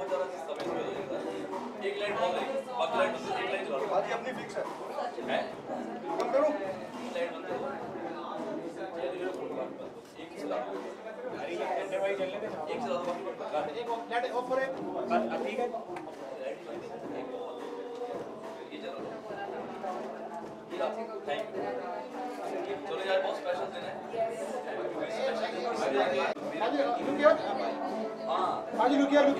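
A crowd of people chatters and calls out loudly nearby.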